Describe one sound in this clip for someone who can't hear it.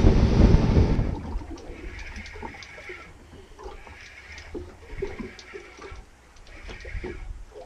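Small waves lap gently against a boat's hull.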